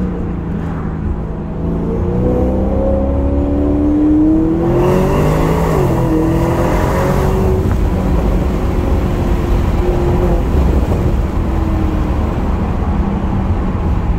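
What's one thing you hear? Tyres roll on the road surface.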